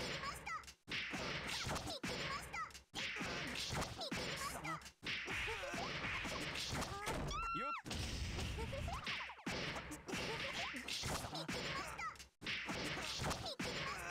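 Fighting game hits land in rapid bursts of punchy impacts.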